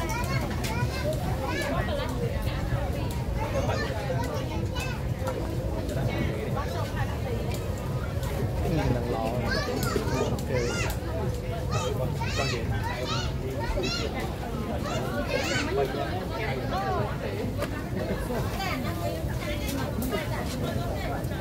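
Food sizzles on a hot grill.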